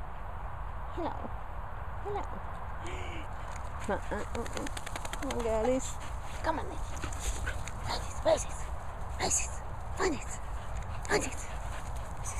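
Dogs yelp and whine as they play.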